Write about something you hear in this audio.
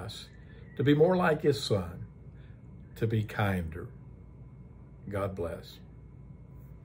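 An older man speaks calmly and warmly, close to a microphone.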